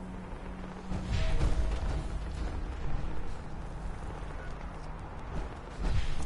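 Heavy metal footsteps thud and clank on the ground.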